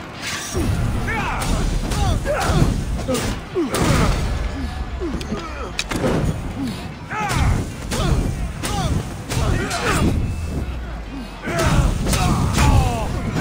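Fire roars and crackles.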